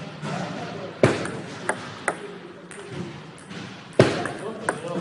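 A table tennis ball clicks sharply off a paddle and bounces on a table.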